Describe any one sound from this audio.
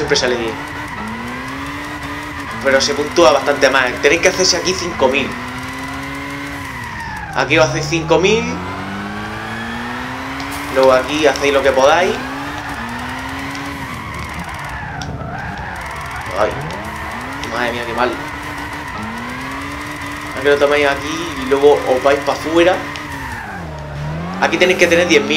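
A racing car engine revs high and drops with each gear change.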